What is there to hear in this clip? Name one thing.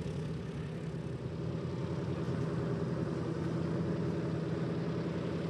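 Propeller engines of a vintage bomber throb loudly with a steady, rumbling drone as it taxis past.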